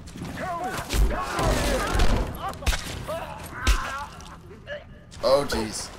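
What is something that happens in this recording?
A man cries out in pain and chokes.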